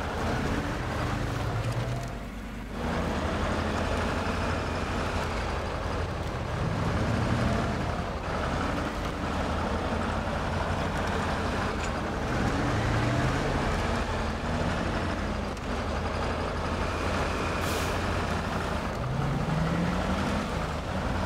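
Tyres crunch over rocks and gravel.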